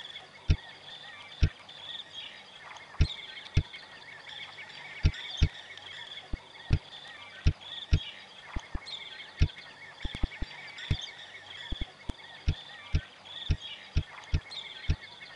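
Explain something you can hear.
Menu buttons click sharply, again and again.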